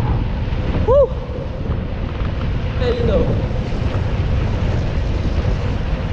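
Wind rumbles steadily and loudly.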